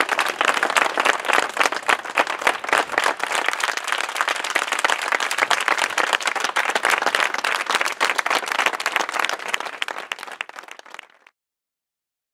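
A crowd claps loudly outdoors.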